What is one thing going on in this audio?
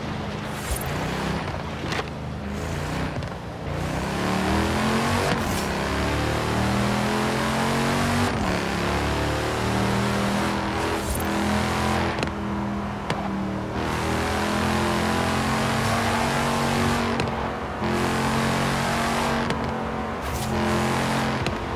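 Wooden fences crash and splinter as a car smashes through them.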